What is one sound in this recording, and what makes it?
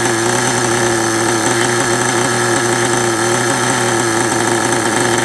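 A small model engine idles loudly with a steady, buzzing drone.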